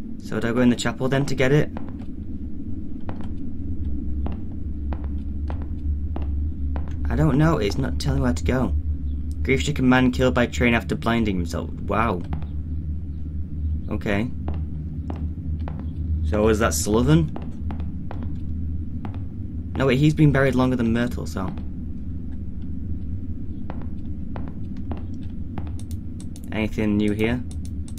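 Footsteps tap on a hard tiled floor.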